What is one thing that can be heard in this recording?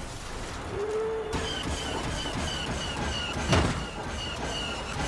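A speeder bike engine roars steadily as it races along.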